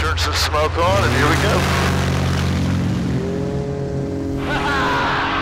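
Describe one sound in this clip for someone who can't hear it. A propeller plane's engine revs up with a rising pitch.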